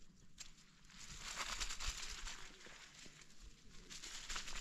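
A tool scrapes through dry soil.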